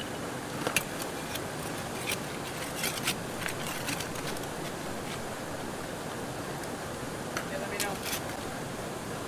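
Small stones clatter and scrape as a hand digs through gravel.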